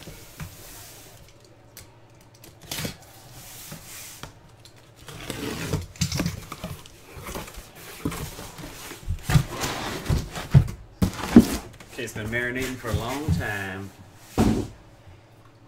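Cardboard scrapes, rustles and thumps as a box is opened.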